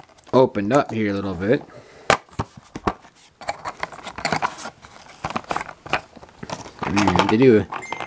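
Cardboard flaps rustle and scrape as a box is opened by hand.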